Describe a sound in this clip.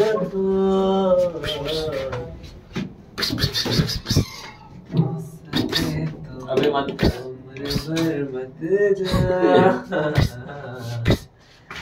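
Elevator buttons click as a finger presses them.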